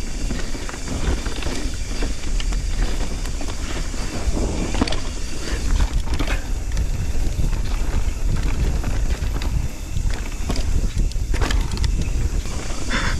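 Wind rumbles loudly past a close microphone.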